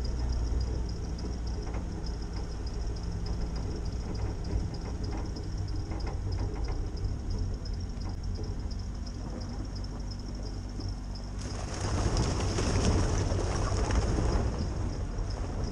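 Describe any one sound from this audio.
A vehicle engine rumbles low and steady.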